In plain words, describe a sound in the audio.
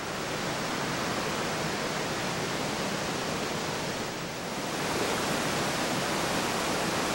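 Waterfalls roar steadily.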